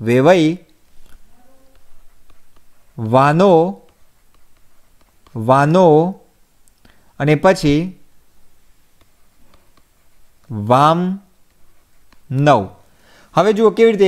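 A man speaks slowly and clearly in short bursts, close to a microphone, with pauses between.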